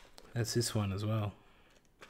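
Cardboard packaging crinkles in a hand.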